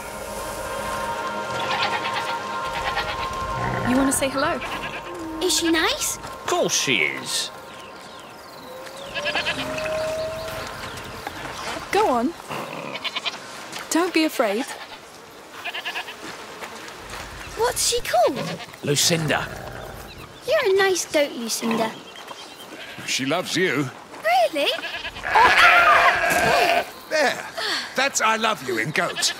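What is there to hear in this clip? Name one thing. A goat bleats nearby.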